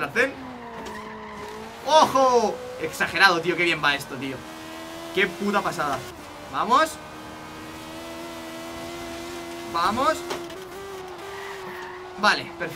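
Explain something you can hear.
A racing car engine roars at high speed, rising and shifting through gears.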